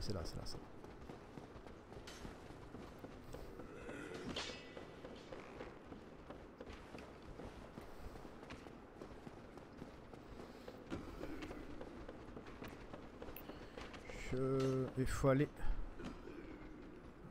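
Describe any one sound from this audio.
Armoured footsteps clank on stone and wooden stairs.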